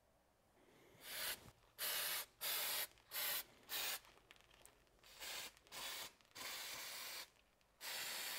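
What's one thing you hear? An aerosol can sprays in short hissing bursts.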